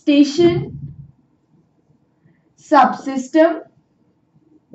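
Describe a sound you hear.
A young woman speaks calmly and clearly, as if explaining.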